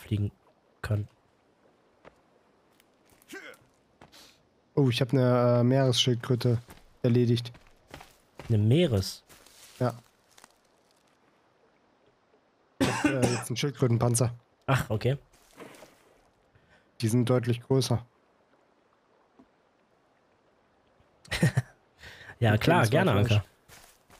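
A man talks with animation close to a microphone, in bursts with pauses.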